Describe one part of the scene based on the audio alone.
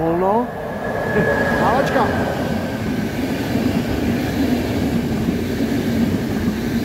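A passing train rumbles and clatters loudly along the rails.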